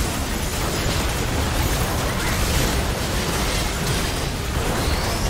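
Magic spells blast and crackle in a fierce battle.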